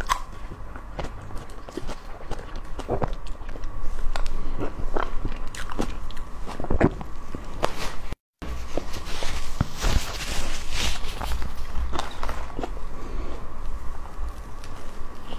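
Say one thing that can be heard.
A metal spoon scoops into soft cream cake.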